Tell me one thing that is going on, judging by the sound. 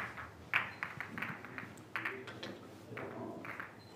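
Snooker balls click against each other on a table.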